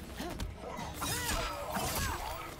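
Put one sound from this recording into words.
Magic energy whooshes and crackles.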